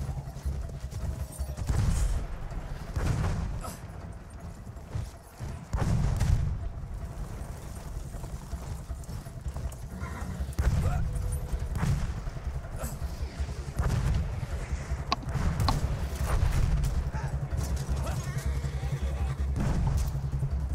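A horse gallops with heavy, rapid hoofbeats.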